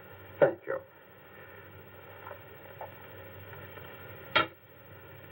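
An elderly man speaks in short, sharp bursts.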